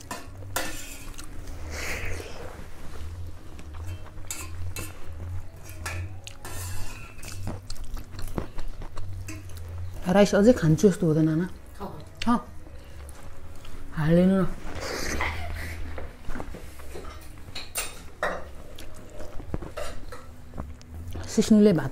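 Fingers squish and scrape through rice on a metal plate.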